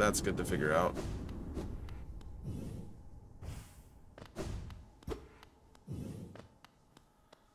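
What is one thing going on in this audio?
Quick whooshes and thuds of game effects sound in bursts.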